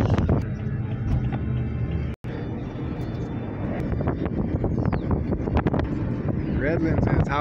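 A car engine rumbles steadily from inside a moving car.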